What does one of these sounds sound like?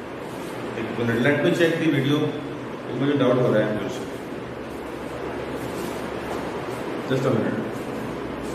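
A man speaks briefly in short bursts close by.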